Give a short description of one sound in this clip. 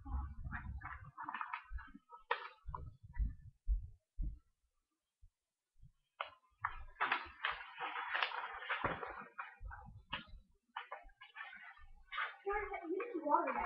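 Paper rustles and flaps as a sheet is waved about.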